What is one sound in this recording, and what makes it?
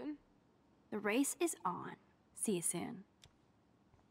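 A second young woman speaks quietly, close by.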